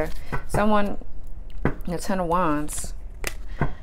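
Playing cards shuffle with soft, papery flicks.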